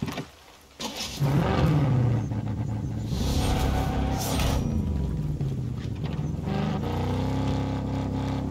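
A buggy engine rumbles and revs as the buggy drives off.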